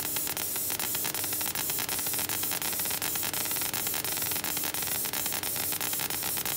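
A laser head ticks and clicks as it moves back and forth.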